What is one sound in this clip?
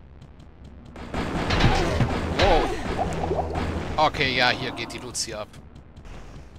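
A fireball bursts and roars.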